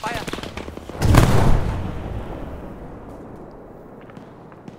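A loud explosion booms close by and rumbles away.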